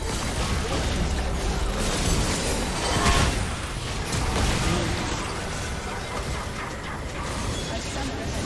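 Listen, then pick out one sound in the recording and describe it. Game spell effects and attacks crackle and boom in a busy fight.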